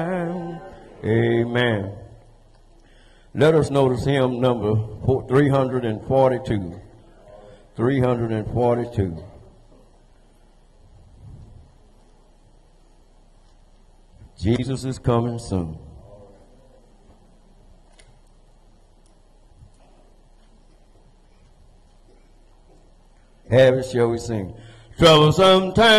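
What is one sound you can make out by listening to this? A man speaks with animation through a microphone in a large echoing hall, pausing between phrases.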